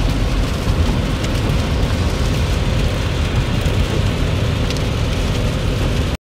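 Raindrops tap lightly on the windshield.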